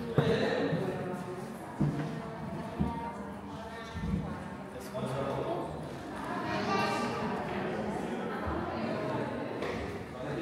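Many adults talk among themselves nearby in an echoing hall.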